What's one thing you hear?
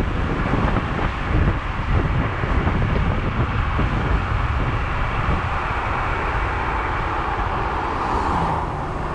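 Wind buffets the microphone of an electric scooter riding on asphalt.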